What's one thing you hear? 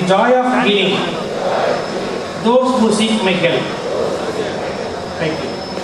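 A middle-aged man speaks into a microphone over a loudspeaker, reading out.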